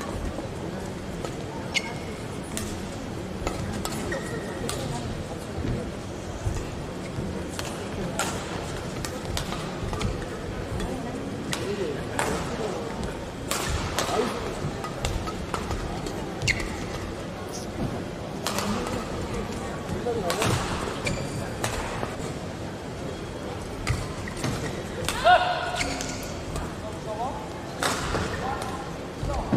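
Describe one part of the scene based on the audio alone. Rackets smack a shuttlecock back and forth in a large echoing hall.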